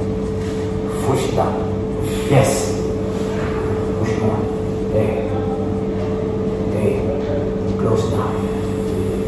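A man talks quietly in short bursts nearby.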